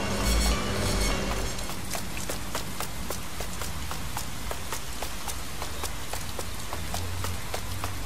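Quick footsteps run on pavement.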